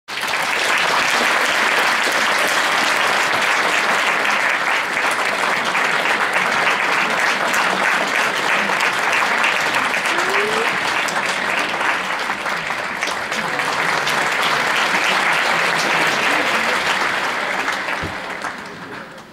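A large audience applauds steadily in an echoing concert hall.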